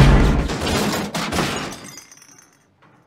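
A metal panel crashes and clatters onto the pavement.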